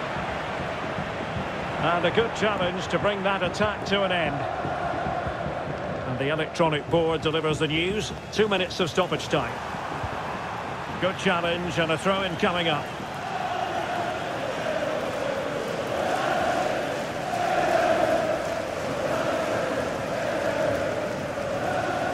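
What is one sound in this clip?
A large stadium crowd murmurs and cheers steadily throughout.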